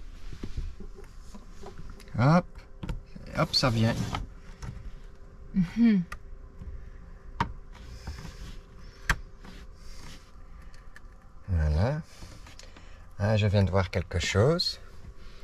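Fingers press and click plastic window trim into place.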